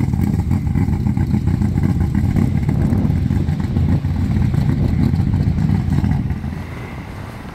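A dump truck's engine rumbles as the truck drives away.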